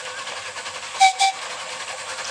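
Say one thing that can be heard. A train whistle gives two short toots.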